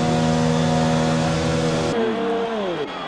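A racing car engine whines loudly at a steady high pitch.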